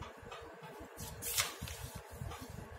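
Paper sheets rustle as they are flipped.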